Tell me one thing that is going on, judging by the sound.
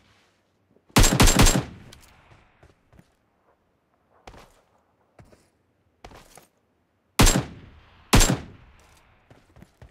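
Single rifle shots crack loudly and echo.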